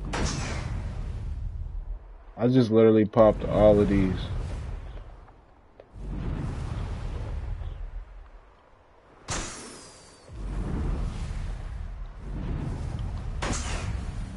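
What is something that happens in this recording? Wind rushes in bursts.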